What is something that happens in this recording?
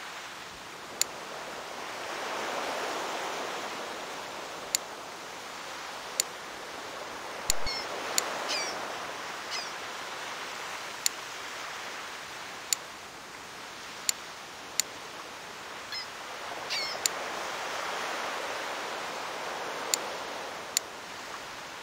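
Short sharp interface clicks sound now and then.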